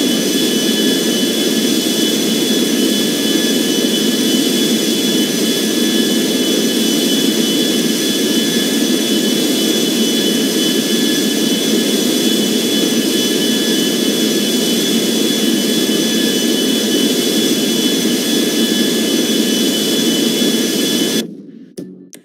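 Jet engines roar steadily as an airliner flies.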